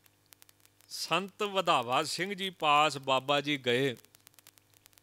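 A man chants in a drawn-out, melodic voice through a microphone.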